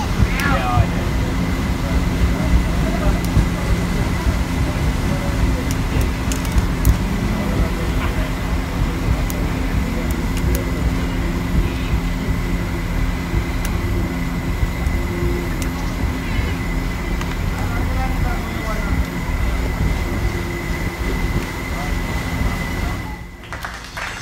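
Wind buffets outdoors with a low, steady rumble.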